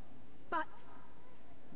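A young woman speaks a word softly.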